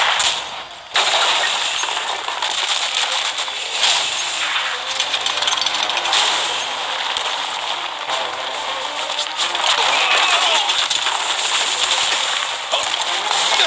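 Stone walls crumble and rubble crashes down.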